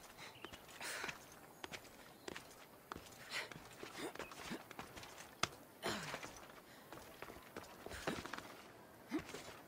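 Hands and feet scrape and knock against rock in quick bursts.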